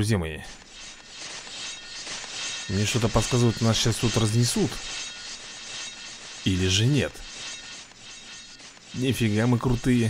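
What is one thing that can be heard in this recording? Small weapons clash and clink in a game battle.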